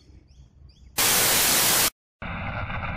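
Loud static hisses briefly.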